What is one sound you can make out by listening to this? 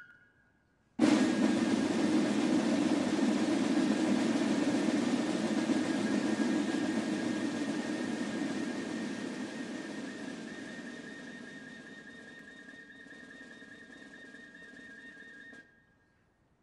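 Snare drums roll loudly and steadily, then fade.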